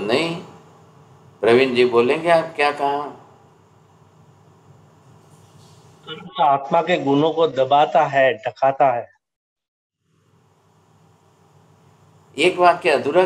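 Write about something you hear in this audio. An elderly man speaks calmly in bursts over an online call, with pauses between phrases.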